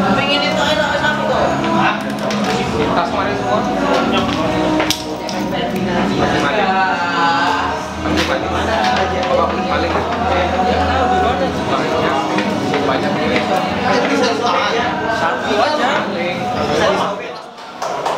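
Young men chatter loudly together in an echoing room.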